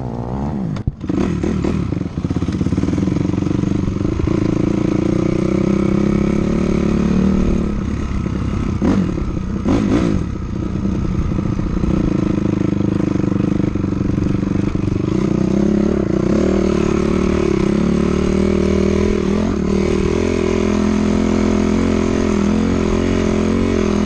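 Tyres crunch over a gravel dirt track.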